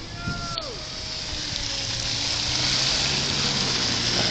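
A car passes close by, its tyres hissing on a slushy road.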